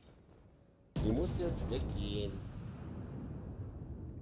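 Heavy naval guns fire a loud booming salvo that rumbles and slowly fades.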